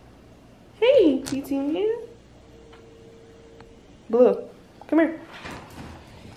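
A small dog whines and yelps in high, wavering cries.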